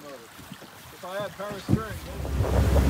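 A man calls out outdoors.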